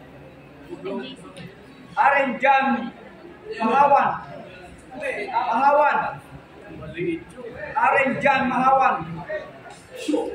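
A man calls out short commands loudly.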